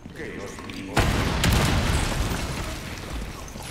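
A loud explosion booms, followed by roaring flames.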